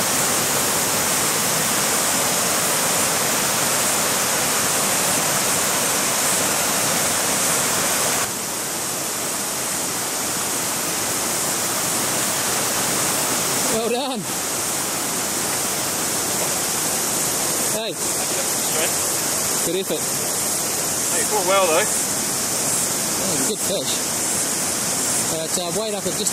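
A river rushes and splashes steadily close by.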